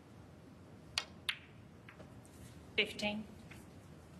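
Snooker balls click sharply against each other on a table.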